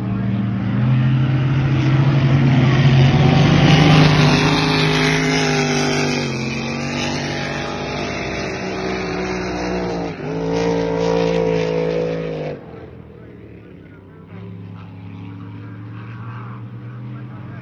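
A motorboat engine roars across the water, its pitch rising and falling, then fades into the distance.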